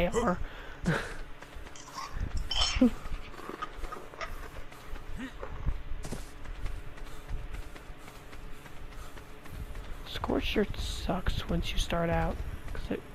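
Footsteps thud softly on dry sandy ground.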